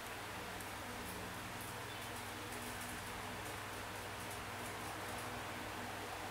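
A fingertip taps lightly on a touchscreen.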